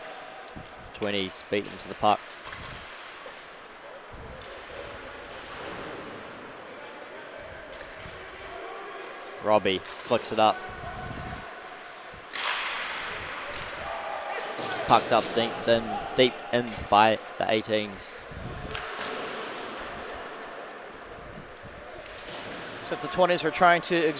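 Players shout to each other across the ice.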